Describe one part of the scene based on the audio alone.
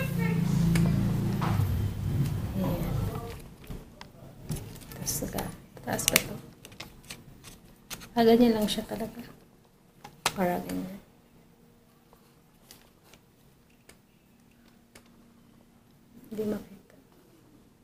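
Hard plastic parts click and rattle as they are handled.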